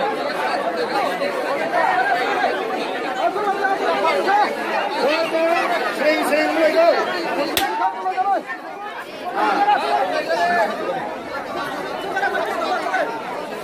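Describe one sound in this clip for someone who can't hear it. A man speaks through a microphone over a loudspeaker, addressing a crowd outdoors.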